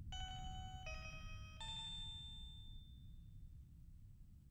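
Three bright electronic chimes ring out one after another and fade.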